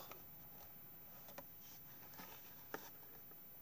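A tape measure taps softly against a paper card.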